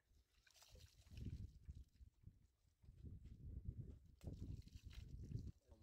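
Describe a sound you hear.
Water pours from a jug and splashes onto the ground.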